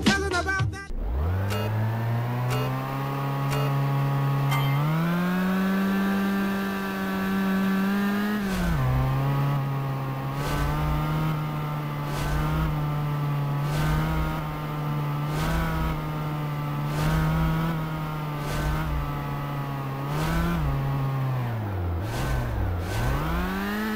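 A car engine hums and revs up and down as it picks up speed.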